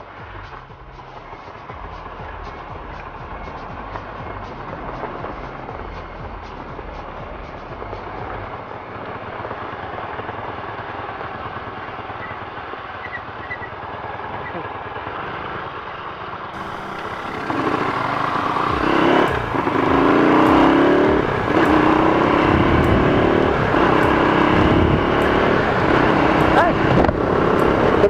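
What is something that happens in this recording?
A motorcycle engine hums steadily, growing louder as it speeds up.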